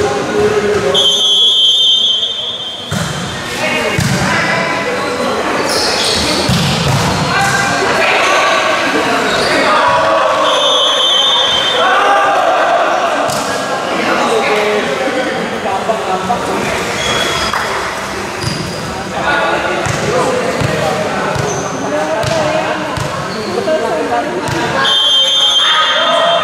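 A referee's whistle blows short and shrill.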